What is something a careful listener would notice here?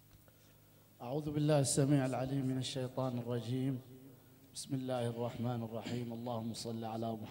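An elderly man recites expressively into a microphone.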